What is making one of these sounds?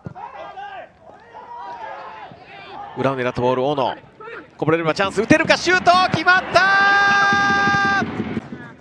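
A crowd cheers and shouts in an open stadium.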